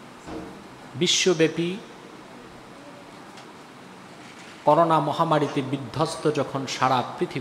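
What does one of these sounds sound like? A man speaks into a microphone in short, measured phrases with pauses.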